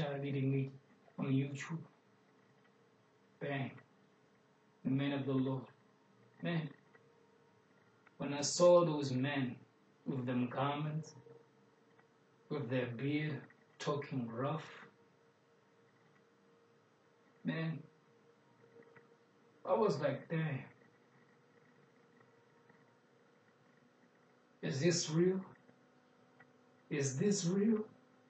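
A young man speaks calmly close by, in short phrases with pauses.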